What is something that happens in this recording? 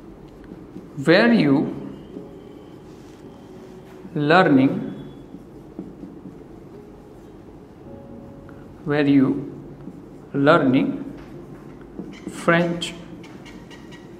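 A man speaks calmly in short phrases, with pauses between them.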